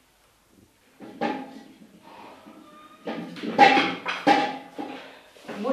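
Dishes clatter while being washed in a sink.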